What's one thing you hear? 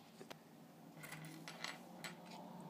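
Fingers rustle and tick against a small metal part up close.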